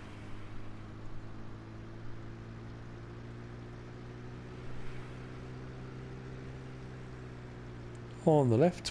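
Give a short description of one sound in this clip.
A pickup truck engine hums steadily as it drives along a road.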